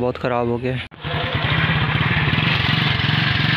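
A motorcycle engine runs with a steady, rapid putter close by.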